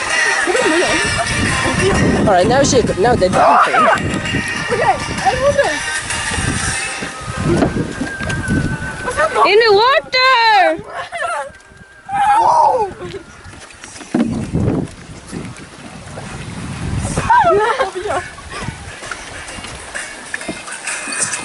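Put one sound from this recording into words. Young women laugh and shriek close by.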